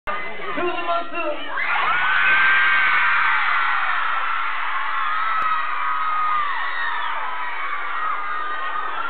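A man sings loudly into a microphone through a loud sound system.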